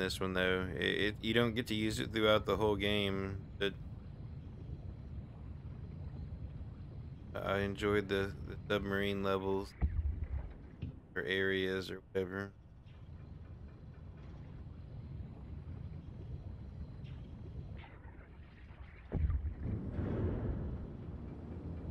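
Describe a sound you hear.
A small underwater drone hums with a low, steady drone.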